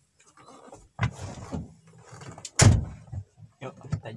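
A man climbs into a car seat with thumps and rustling.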